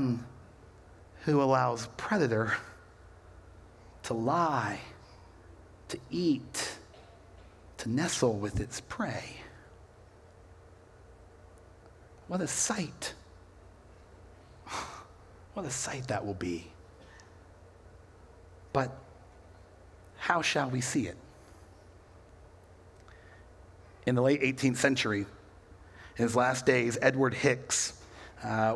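A man speaks with animation through a microphone, in bursts with pauses, in an echoing hall.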